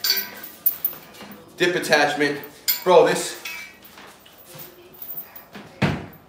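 Metal equipment clanks against a rack.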